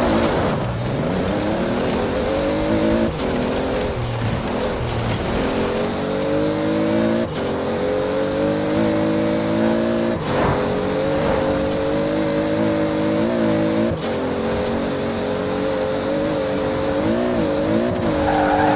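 A car engine revs hard, climbing in pitch and dropping at each gear change.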